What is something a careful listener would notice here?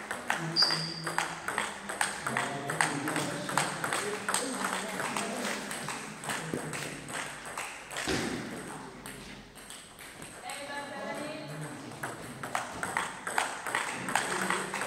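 A table tennis ball clicks rapidly back and forth off paddles and a table in an echoing hall.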